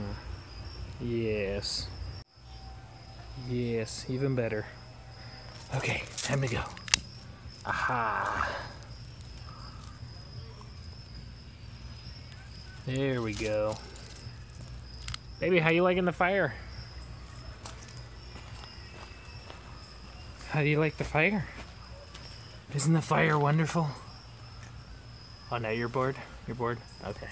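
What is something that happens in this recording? A lighter clicks and sparks.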